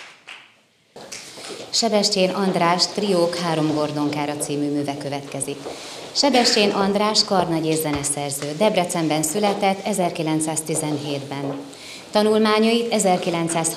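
A woman reads aloud expressively into a microphone.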